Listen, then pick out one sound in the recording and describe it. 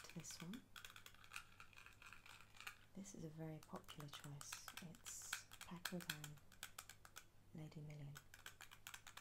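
A woman speaks softly and close by, as if whispering.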